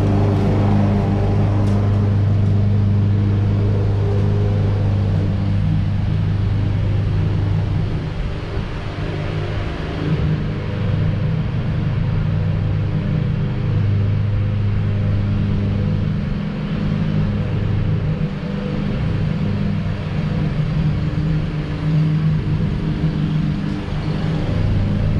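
A lawn mower engine drones steadily nearby.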